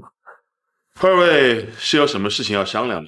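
A middle-aged man speaks calmly and questioningly.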